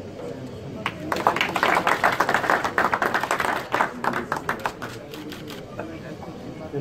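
A crowd applauds after a ribbon is cut.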